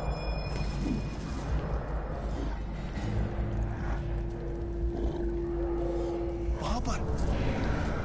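A large cat pads softly over the ground.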